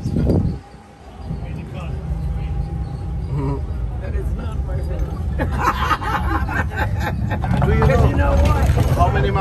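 A vehicle engine rumbles low and steady while driving slowly.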